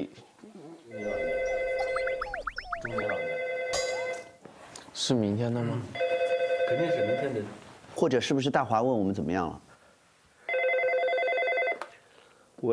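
A phone rings in repeated bursts.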